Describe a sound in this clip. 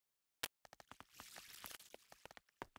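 Water splashes and pours out.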